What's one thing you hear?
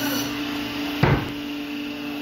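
A heavy frozen fish thumps down onto a metal table.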